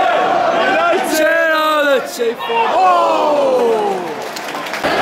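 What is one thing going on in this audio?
A stadium crowd roars in excitement.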